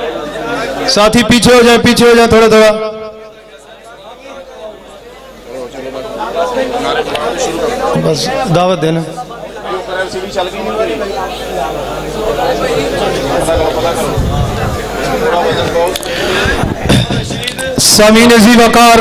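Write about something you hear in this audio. A crowd of men chants along in loud bursts.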